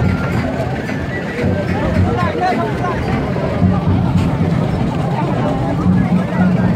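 A crowd of men and women talk and call out nearby outdoors.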